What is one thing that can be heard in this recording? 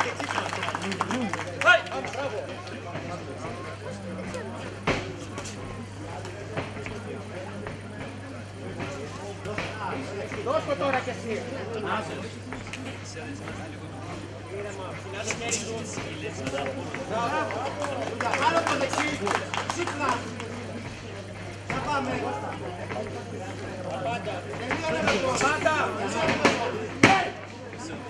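A crowd of spectators shouts and calls out outdoors.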